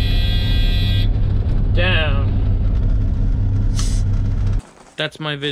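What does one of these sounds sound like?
A truck engine idles with a deep, steady rumble.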